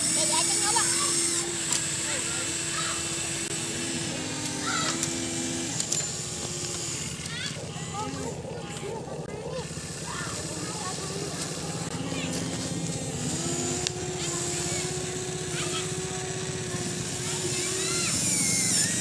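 Gravel scrapes and rattles under a toy excavator's bucket.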